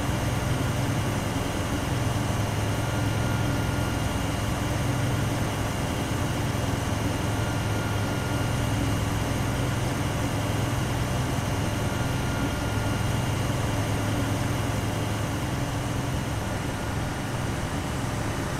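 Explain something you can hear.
An armoured vehicle's engine rumbles steadily as it drives along a road.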